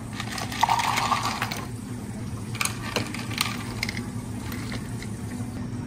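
Ice cubes clatter and clink into a glass.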